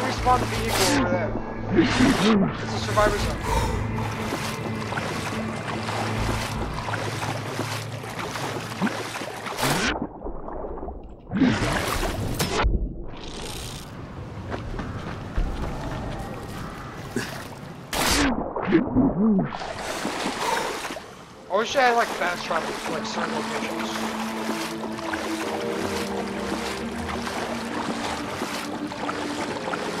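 Water splashes with steady swimming strokes.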